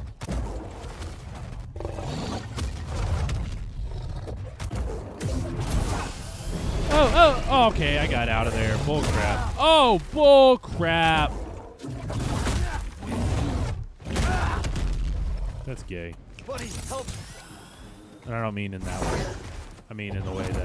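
Blows clash and thud during a fight.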